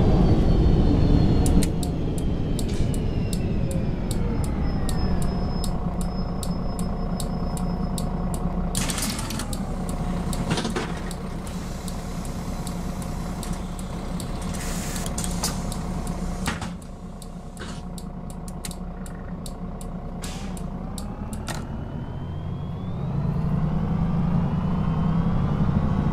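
A bus engine rumbles, winding down as the bus slows and rising again as it pulls away.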